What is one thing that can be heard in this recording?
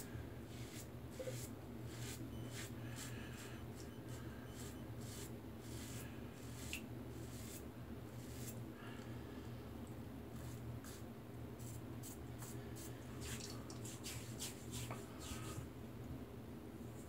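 A razor scrapes softly over stubble in short strokes.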